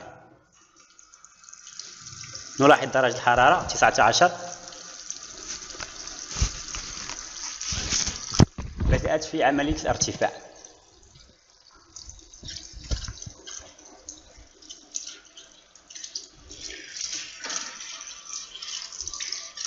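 Water runs from a tap and splashes into a basin.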